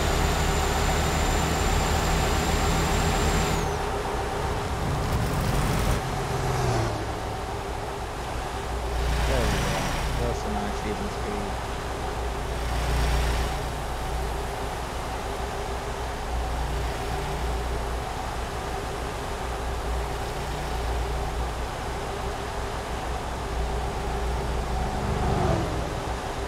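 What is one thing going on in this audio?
A truck engine drones steadily as the truck drives along.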